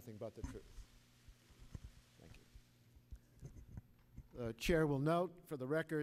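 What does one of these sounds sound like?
A crowd murmurs quietly.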